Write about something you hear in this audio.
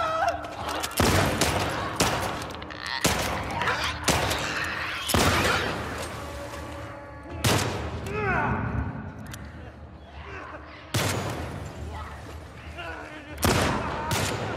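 Gunshots ring out loudly in an echoing space.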